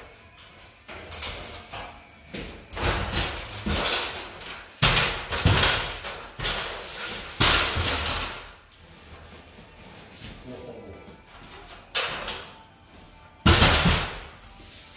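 A paint sprayer hisses in loud bursts.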